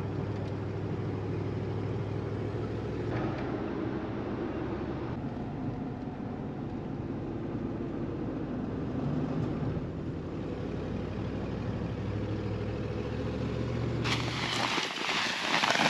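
A car engine hums steadily from inside a moving vehicle.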